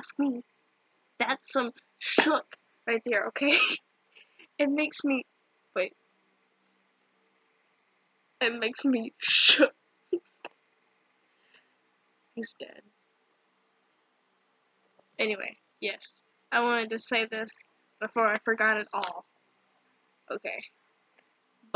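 A teenage girl talks cheerfully and close to a microphone, with pauses.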